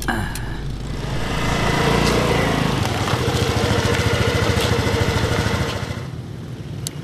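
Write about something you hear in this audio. A motorbike engine idles close by, then cuts off.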